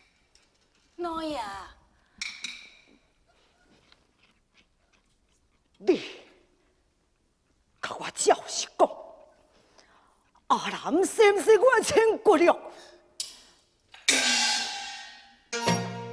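A young woman speaks in a high, stylised stage voice.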